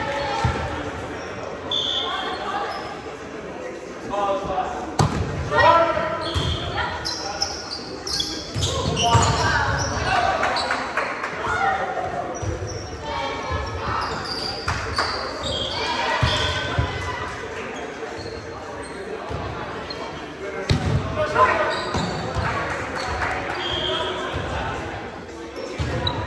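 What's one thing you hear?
Young men and women call out and talk loudly in a large echoing hall.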